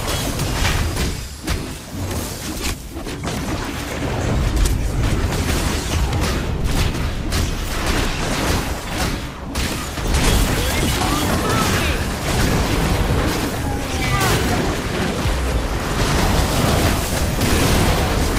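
Magic blasts and explosions crackle and boom during a fight.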